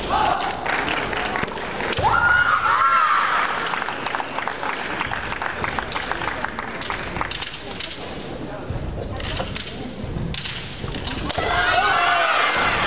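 Fighters shout loudly in a large echoing hall.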